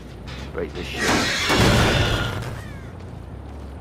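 A heavy metal machine is smashed with loud crashing and grinding.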